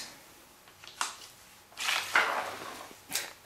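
Small objects tap and scrape on a wooden board.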